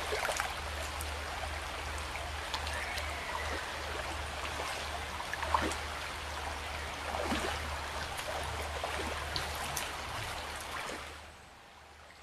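A shallow stream babbles over stones.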